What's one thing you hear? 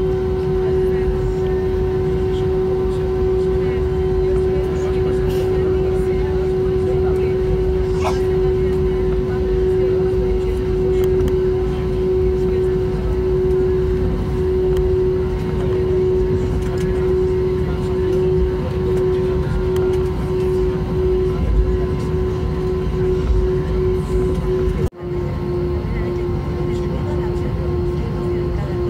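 Jet engines drone steadily with a high, constant whine from inside an aircraft cabin.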